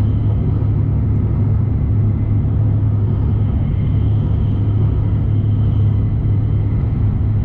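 A train rumbles steadily along the tracks at speed, heard from inside a carriage.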